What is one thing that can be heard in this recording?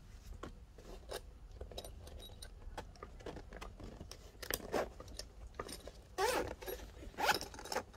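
A zipper is pulled open on a fabric bag.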